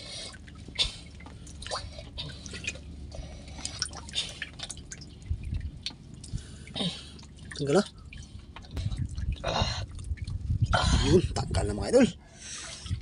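Water splashes as hands rinse a fish.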